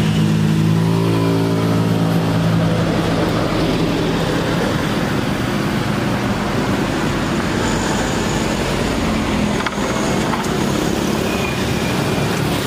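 Traffic rumbles past on a nearby road.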